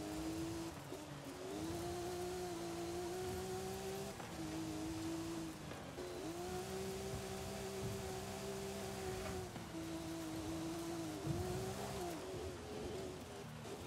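A racing car engine drones steadily, rising and falling in pitch as gears change.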